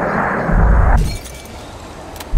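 A glass bowl shatters with a sharp crash.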